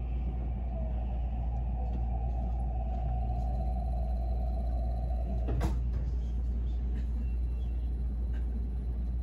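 A train rumbles steadily as it pulls out along a platform.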